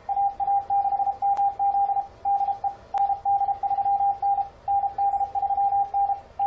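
Morse code beeps come quickly and steadily from a radio receiver.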